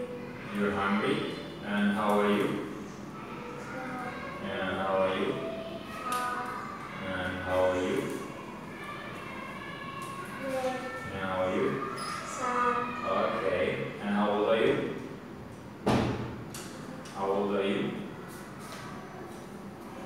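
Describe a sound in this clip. A young boy answers in a small voice.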